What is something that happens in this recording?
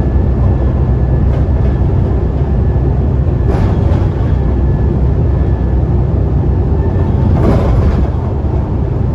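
Tyres roll on the road with a steady hum.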